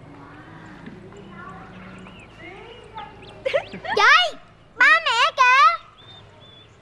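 A young woman laughs and speaks nearby.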